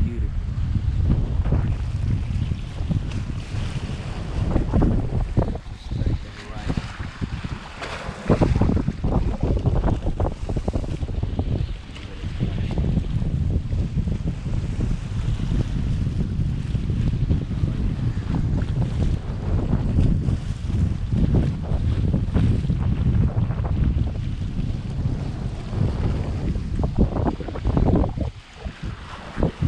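Strong wind rumbles and buffets outdoors.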